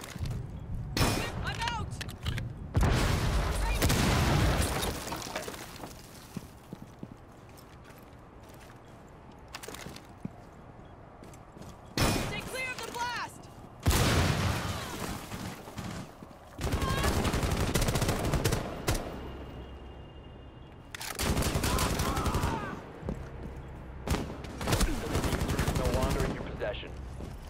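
Rifle shots crack in rapid bursts, close by.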